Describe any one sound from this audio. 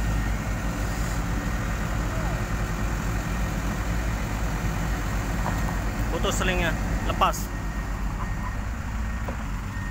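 A backhoe engine rumbles steadily.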